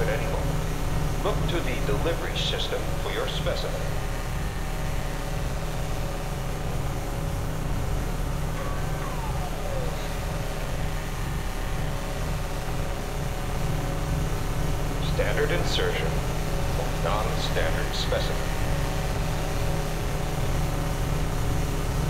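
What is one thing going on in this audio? A deep machine hum drones steadily.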